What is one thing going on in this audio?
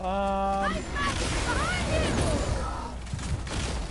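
An icy blast bursts and crackles.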